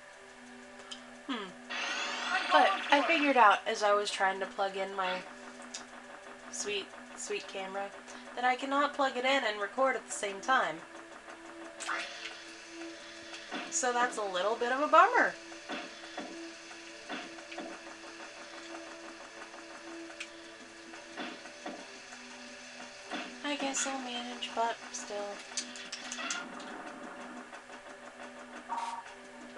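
Upbeat electronic game music plays through a television loudspeaker.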